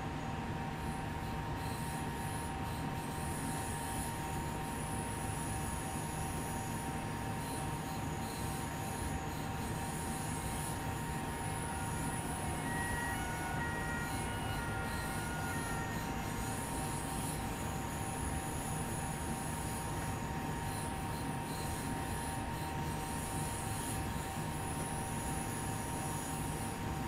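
An electric train hums steadily as it rolls along the tracks.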